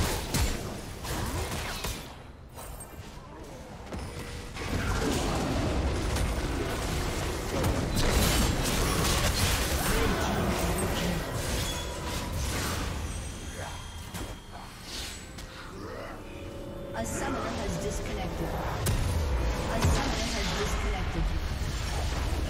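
Spell effects and weapon strikes crackle and clash in a video game battle.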